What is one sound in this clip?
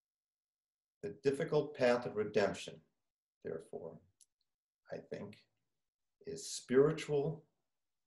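An elderly man speaks calmly into a microphone, as if over an online call.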